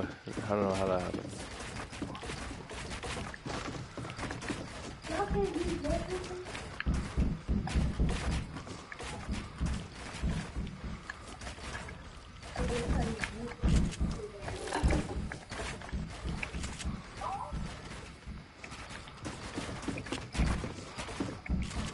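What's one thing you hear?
Footsteps patter on wooden ramps.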